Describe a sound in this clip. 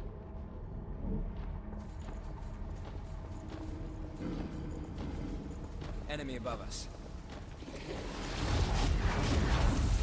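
Footsteps crunch over rubble.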